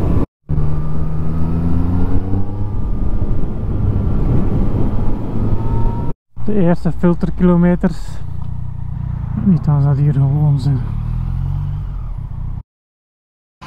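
A motorcycle engine hums and revs up close.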